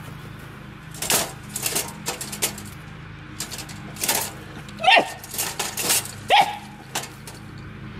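A wire cage trap rattles and clanks.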